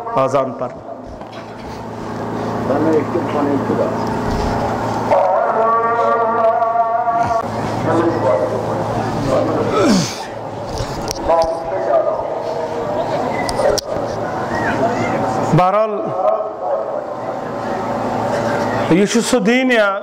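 A man speaks with feeling into a microphone over loudspeakers.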